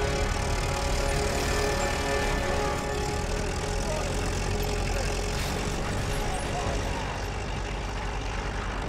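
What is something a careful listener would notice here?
Tank tracks clank and rattle.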